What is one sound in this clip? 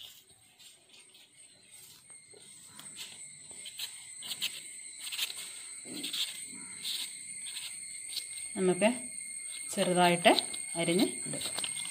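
A knife slices through firm fruit with soft scraping clicks.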